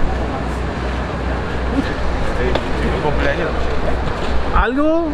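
Several men talk at once nearby, outdoors.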